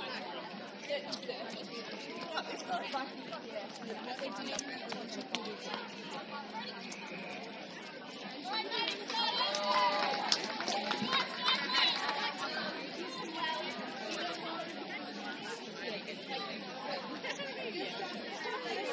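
A crowd of young women chatter and call out outdoors.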